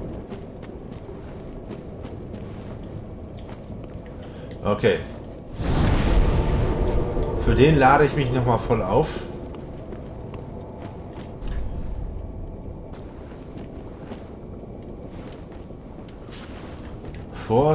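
Footsteps tread on dirt and gravel.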